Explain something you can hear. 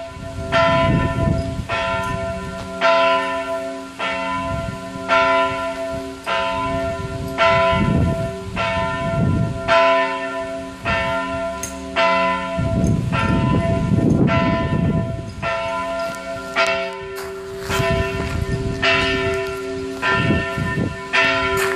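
Large church bells peal repeatedly close by, each stroke ringing out and overlapping the next.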